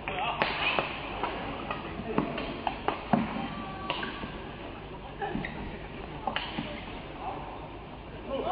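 Rackets smack a shuttlecock back and forth in a quick rally, in a large echoing hall.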